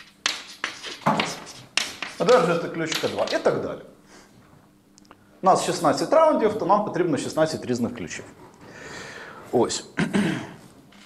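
A man lectures calmly in an echoing room.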